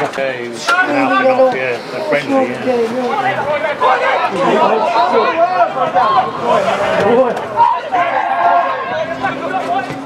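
Men shout and call out to each other outdoors across an open field.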